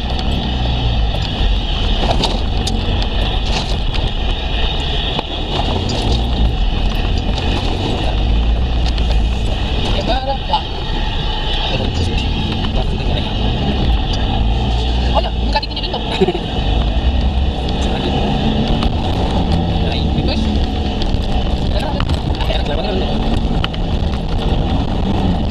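A car's interior rattles and knocks over bumps.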